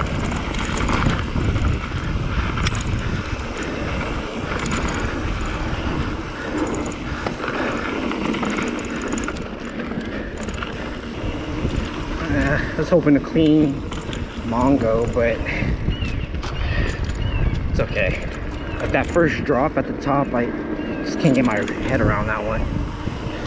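Bicycle tyres crunch and rattle over a gravelly dirt trail.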